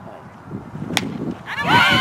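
A bat strikes a softball with a sharp crack.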